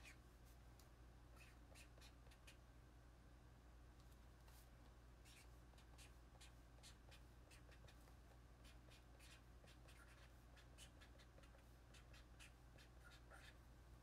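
A young woman makes soft clicking mouth sounds very close to a microphone.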